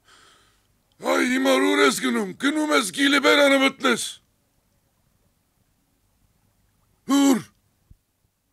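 An elderly man speaks loudly and with feeling, close by.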